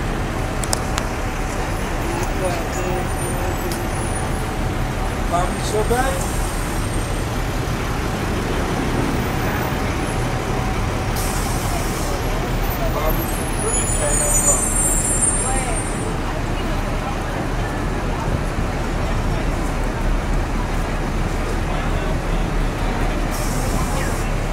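A busy street crowd murmurs and chatters outdoors.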